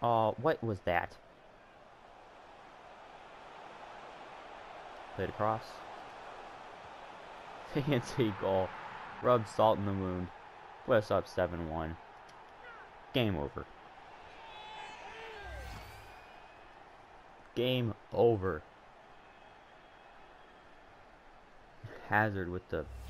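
A stadium crowd murmurs and swells into a cheer.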